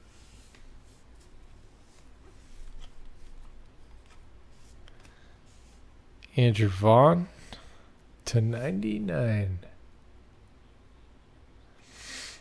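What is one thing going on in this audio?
Trading cards rustle and slide against each other in hands.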